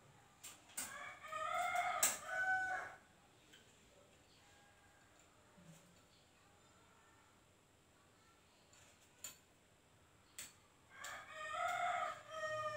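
A sewing machine whirs in short fast bursts.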